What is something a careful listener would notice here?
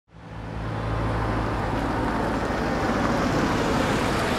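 A car engine hums as a taxi pulls up.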